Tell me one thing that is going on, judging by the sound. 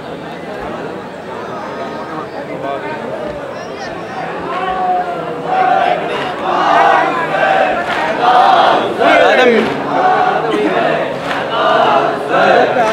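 A man recites with emotion into a microphone, amplified over loudspeakers.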